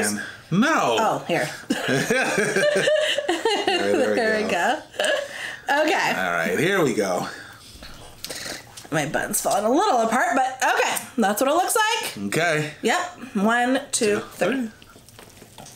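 A young woman talks cheerfully close to a microphone.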